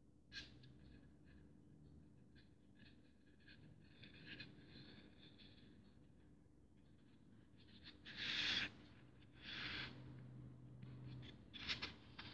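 Fingers rub and press on a foam block.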